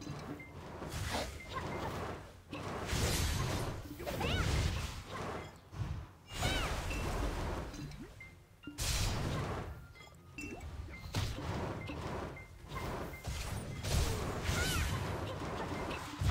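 Swords clash and strike with sharp impacts.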